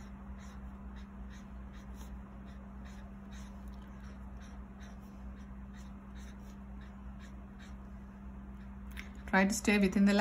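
A felt-tip marker squeaks and scratches across paper in quick short strokes.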